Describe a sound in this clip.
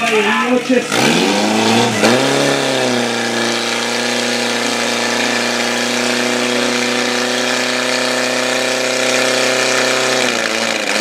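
A portable fire pump engine revs up and runs at high speed.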